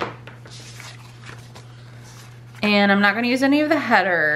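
Paper rustles softly as a sheet is laid on a page.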